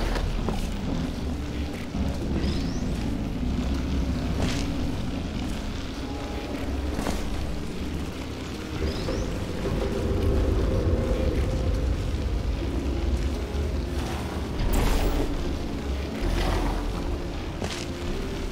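A portal device fires with short sharp bursts.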